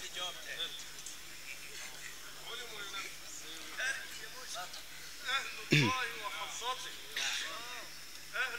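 A crowd of men talk and call out loudly nearby.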